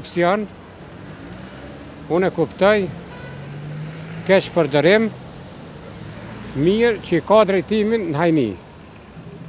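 An elderly man speaks calmly into a microphone in short phrases.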